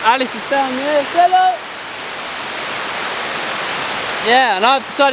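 A waterfall rushes over rock.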